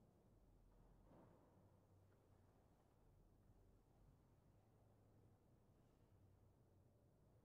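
A grand piano plays softly in a large echoing hall.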